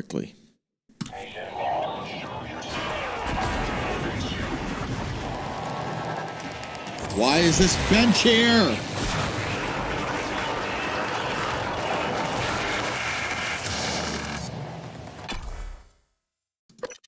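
Electricity crackles and buzzes loudly from a game's weapon.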